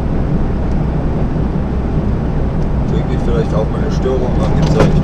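Tyres roll and hum on a motorway surface.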